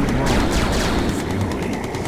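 Explosions boom in a video game battle.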